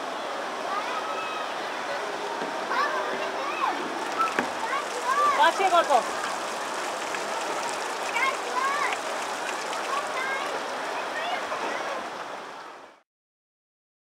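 Water trickles and splashes steadily into a basin.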